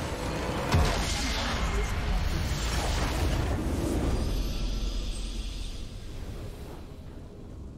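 A deep booming blast erupts and rumbles away.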